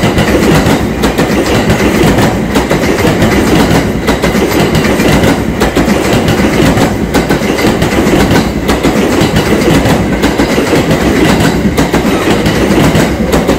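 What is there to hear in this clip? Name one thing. A long train rumbles past close by, its wheels clattering over the rail joints.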